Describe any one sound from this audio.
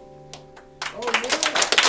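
An acoustic guitar rings out a final chord.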